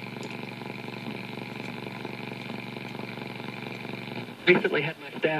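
An old radio hums and buzzes steadily.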